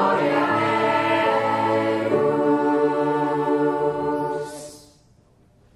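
A choir sings a held chord in a large hall, then stops.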